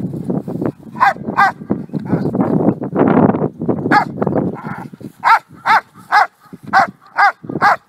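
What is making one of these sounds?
A dog barks sharply and repeatedly close by.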